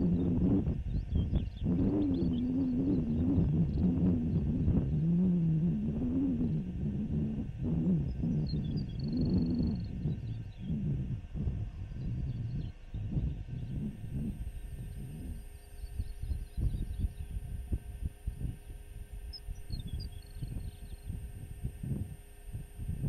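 Wind blows hard across open ground, gusting and roaring.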